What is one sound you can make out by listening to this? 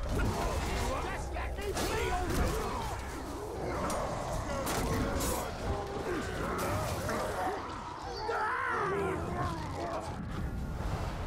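Monsters snarl and roar.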